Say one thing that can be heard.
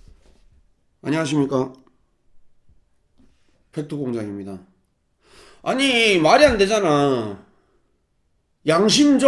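A man speaks expressively into a close microphone in short bursts.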